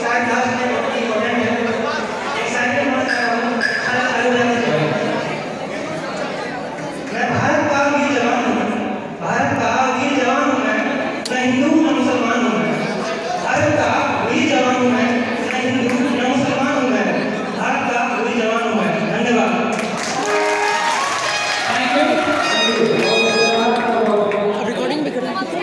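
A young man sings into a microphone through loudspeakers.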